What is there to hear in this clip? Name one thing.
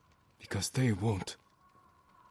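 A man speaks calmly and briefly, close by.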